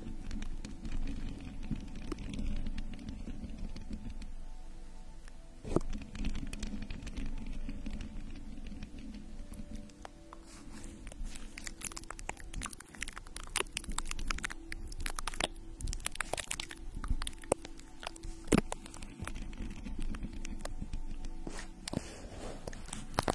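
A young woman whispers softly into a microphone.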